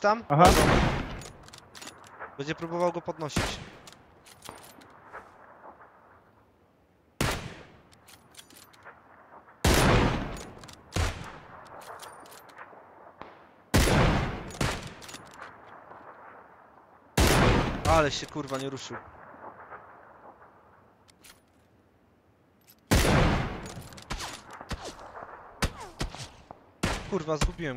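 A sniper rifle fires single shots that echo across open terrain.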